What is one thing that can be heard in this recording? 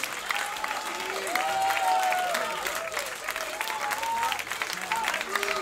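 An audience claps loudly nearby.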